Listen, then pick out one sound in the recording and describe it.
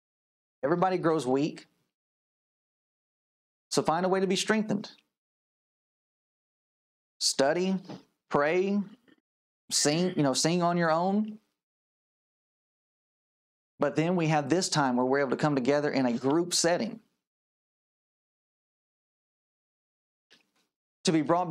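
A man speaks calmly into a close microphone, in short phrases with pauses.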